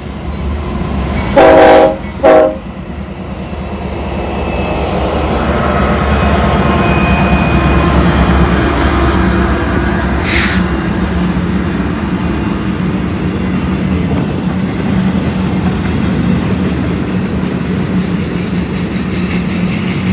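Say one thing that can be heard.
A freight train rumbles and clatters past close by on the rails.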